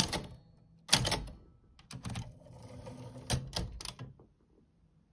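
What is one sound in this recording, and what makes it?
Typewriter keys clack and the carriage ratchets.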